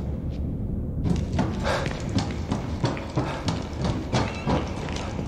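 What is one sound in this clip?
Footsteps clang up metal stairs.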